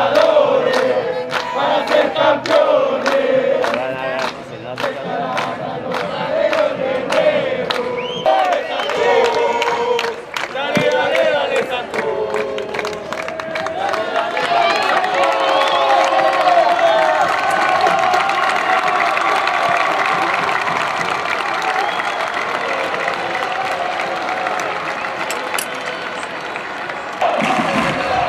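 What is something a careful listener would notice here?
A large crowd of fans chants and sings loudly in an open stadium.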